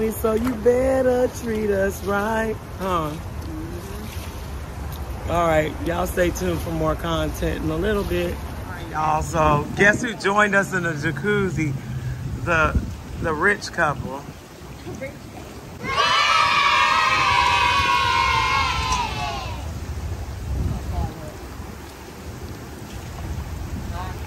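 Water bubbles and churns in a hot tub.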